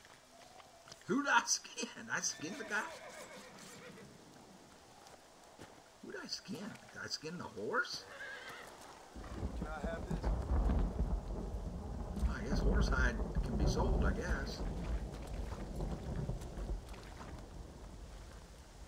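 An elderly man talks calmly into a close microphone.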